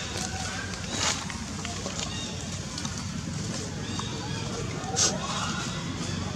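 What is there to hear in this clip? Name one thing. Dry leaves rustle and crackle as a small monkey handles them.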